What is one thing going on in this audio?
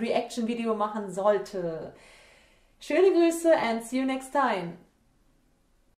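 A young woman speaks brightly and cheerfully, close to a microphone.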